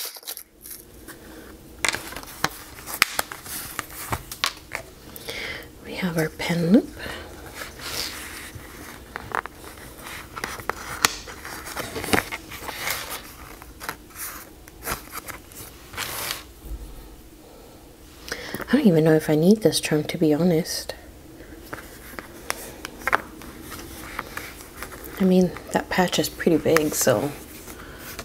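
Hands rustle and rub against a leather notebook cover.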